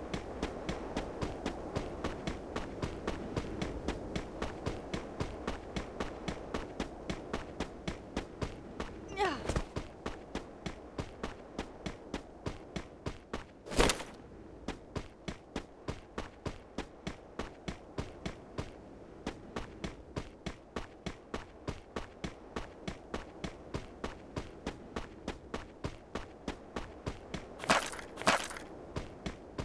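Running footsteps thud in a quick, even rhythm.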